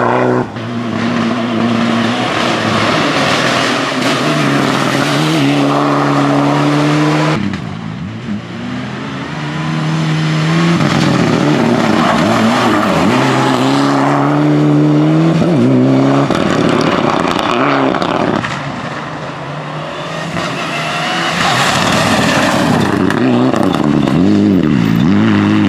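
A rally car engine roars loudly, revving up and down through the gears.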